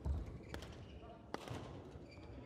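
A shuttlecock is struck sharply with a racket.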